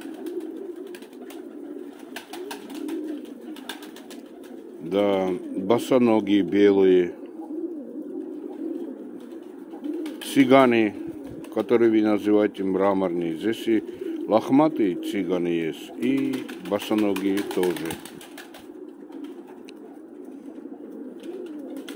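Pigeons coo softly and steadily.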